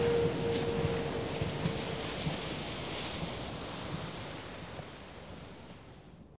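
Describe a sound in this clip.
Ocean waves wash steadily onto a beach and slowly fade away.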